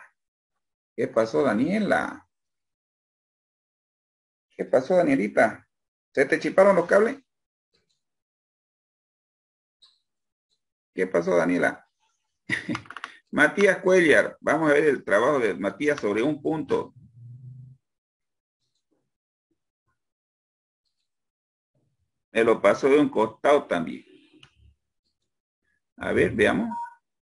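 A man speaks calmly over an online call, in short bursts.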